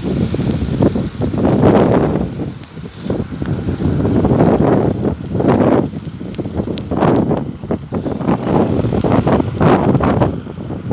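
Wind rumbles and buffets in gusts outdoors.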